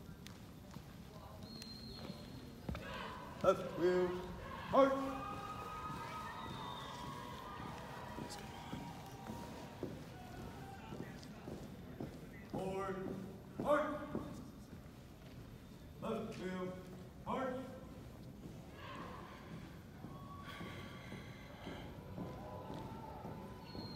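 Boots march in step.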